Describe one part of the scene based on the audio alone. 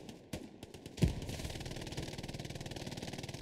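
A muffled explosion booms.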